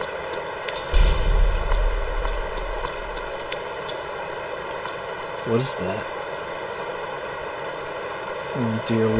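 Soft, airy game music plays steadily throughout.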